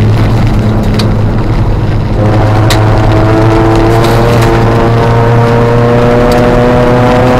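Stones clatter against the underside of the car.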